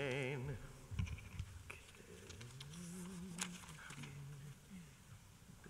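A man chants slowly in a low voice through a microphone.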